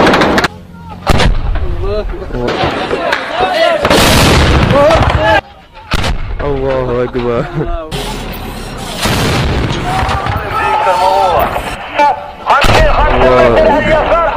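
A heavy truck-mounted gun fires loud booming shots.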